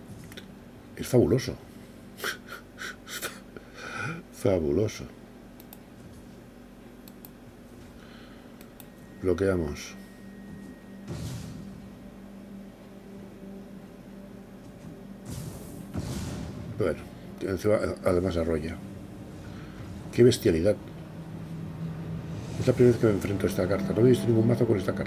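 An elderly man talks with animation close to a microphone.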